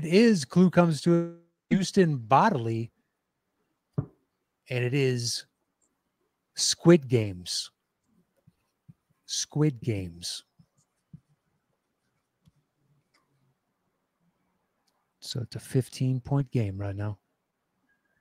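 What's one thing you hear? A man speaks with animation through a microphone over an online call, in short bursts with pauses.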